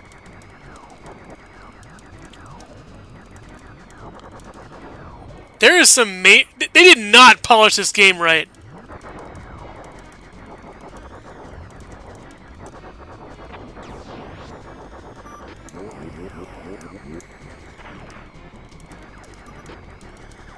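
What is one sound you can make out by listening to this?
Game sound effects whoosh and zap steadily.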